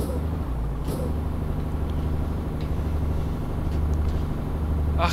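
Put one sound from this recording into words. A diesel truck engine drones while cruising on a highway.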